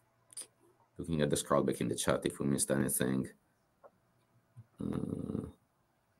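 A man speaks calmly over an online call, heard through a microphone.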